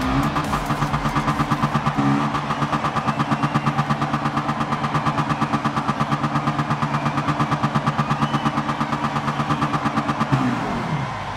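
A race car engine idles with a rapid, throbbing rumble.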